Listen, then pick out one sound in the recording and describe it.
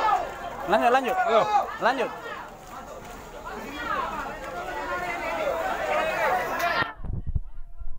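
Several men talk loudly and excitedly nearby outdoors.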